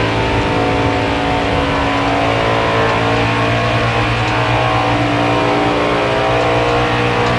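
Other race cars' engines drone close by.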